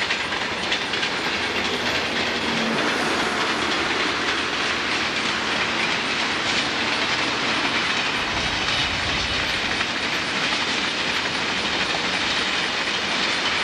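A long freight train rumbles and clatters steadily along the tracks in the distance.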